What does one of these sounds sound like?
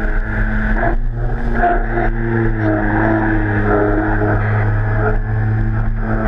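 Water sprays and splashes against a jet ski.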